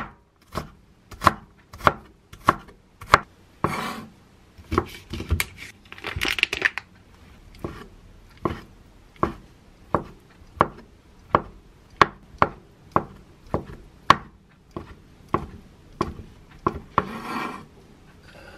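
A knife chops steadily on a wooden board.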